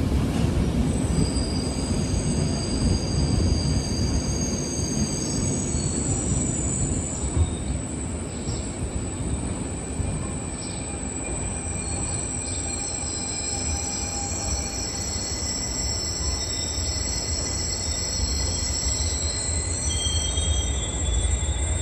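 Train wheels squeal faintly on the rails.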